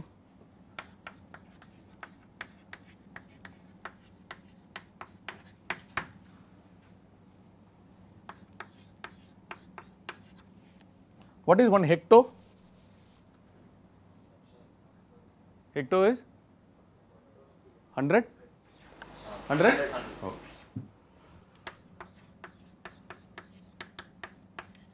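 Chalk taps and scrapes on a chalkboard.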